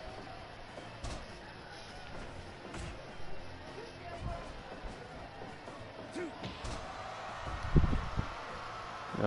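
Heavy thuds sound as wrestlers slam onto a mat.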